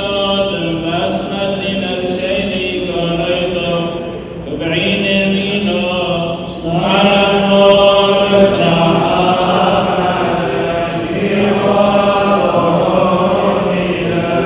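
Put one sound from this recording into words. A group of men chant slowly in unison in an echoing hall.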